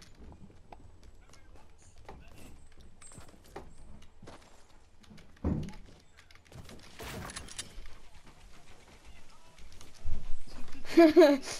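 Footsteps clatter quickly on wooden and tiled roofs.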